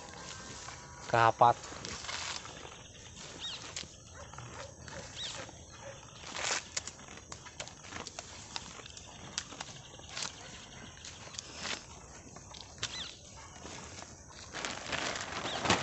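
Cows tear and munch grass close by.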